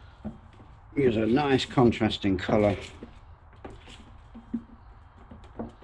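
Plastic parts knock and scrape as hands fit them together.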